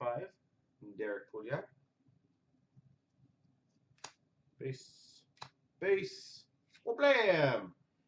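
Cards rustle and flick softly as hands sort through them.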